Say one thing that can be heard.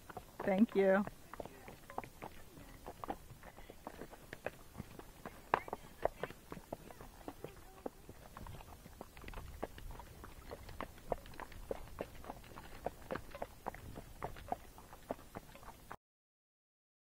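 Horse hooves clop steadily on a dirt trail.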